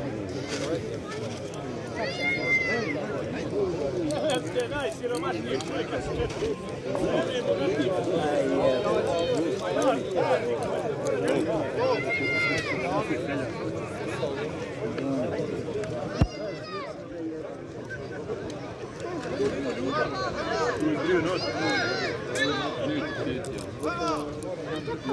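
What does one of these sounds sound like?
A large outdoor crowd chatters and murmurs steadily.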